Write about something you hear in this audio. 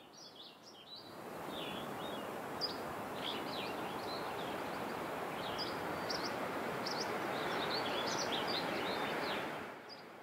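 Wind rushes steadily through tall pine trees outdoors.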